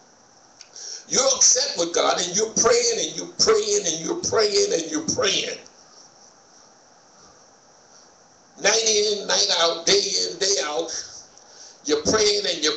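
A man speaks calmly into a microphone, heard through loudspeakers in an echoing room.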